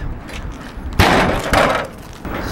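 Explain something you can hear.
A heavy metal ramp drops onto the ground with a clang.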